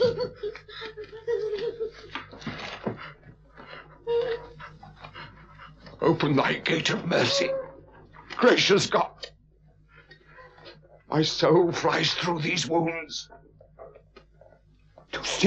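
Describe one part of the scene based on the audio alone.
An elderly man speaks in a strained, anguished voice close by.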